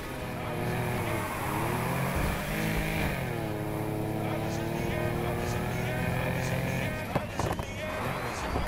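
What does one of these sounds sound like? A car engine roars loudly, revving up and down as gears shift.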